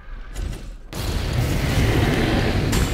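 A burst of fire roars.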